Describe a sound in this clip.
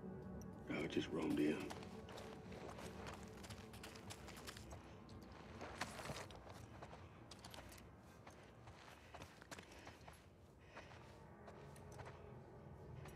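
Footsteps crunch slowly over gritty debris.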